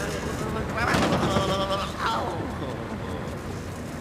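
A body thuds onto a hard floor.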